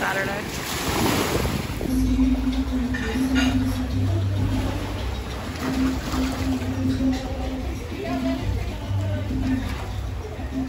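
Water laps gently against a shore.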